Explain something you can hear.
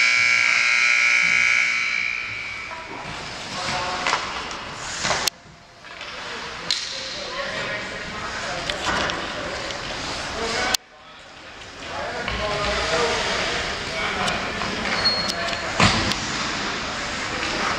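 Hockey skates scrape and glide on ice in a large echoing rink.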